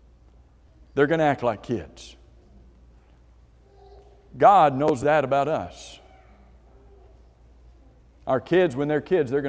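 A man speaks with emphasis through a microphone in a large echoing hall, pausing between phrases.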